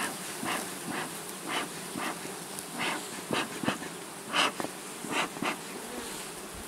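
A bee smoker puffs in short bursts.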